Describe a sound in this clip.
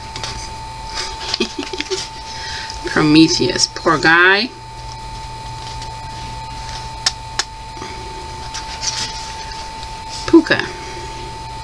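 Book pages rustle and flap as they are turned.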